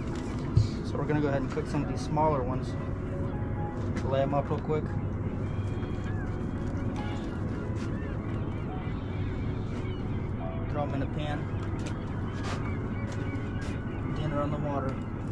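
A man talks casually nearby, outdoors.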